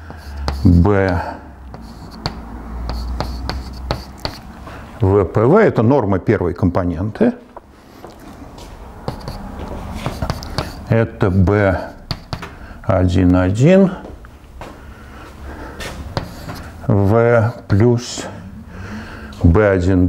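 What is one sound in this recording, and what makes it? An elderly man speaks calmly in a large, echoing room.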